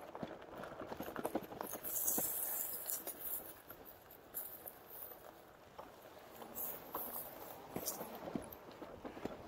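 Bicycle tyres rumble and bump over grass and rough ground.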